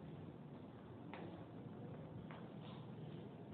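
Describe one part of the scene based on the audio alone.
Footsteps tap on a hard floor as a man walks away.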